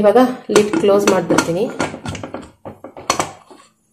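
A metal lid clanks onto a pot.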